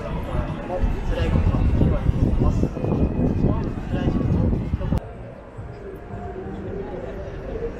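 A crowd of people murmurs in a busy street.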